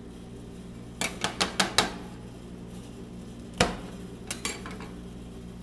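Metal spatulas clink and tap sharply against a metal plate.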